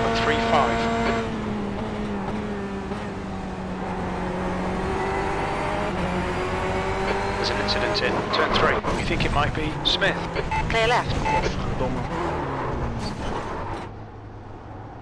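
A racing car engine roars and drops in pitch as it shifts gears.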